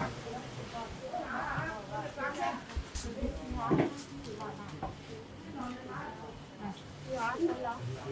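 A middle-aged woman talks with animation nearby.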